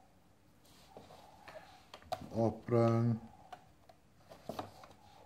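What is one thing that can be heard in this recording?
A plastic drawing square knocks and slides on paper close by.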